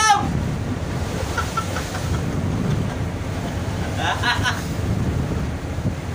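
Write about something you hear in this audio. Waves splash and churn against a boat's hull.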